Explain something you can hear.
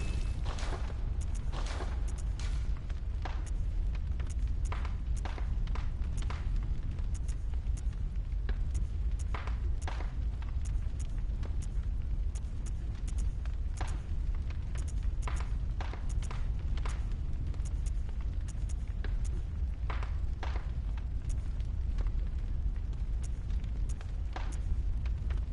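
Soft menu clicks tick again and again.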